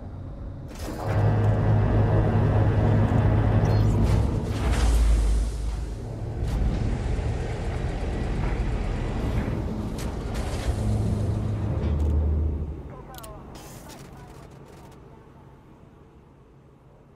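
A spaceship's engines rumble and roar, then fade away.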